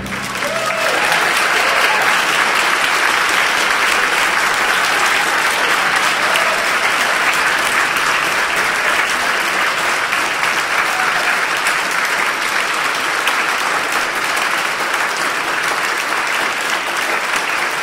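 An orchestra plays loudly in a large echoing hall.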